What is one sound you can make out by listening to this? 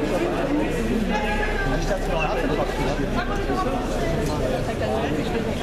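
A crowd of people chatter all around, close by.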